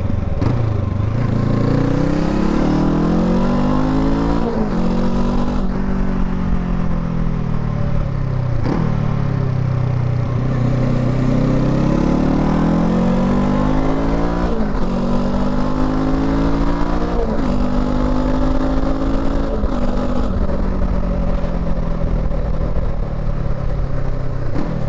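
A motorcycle engine rumbles and revs up and down through the gears.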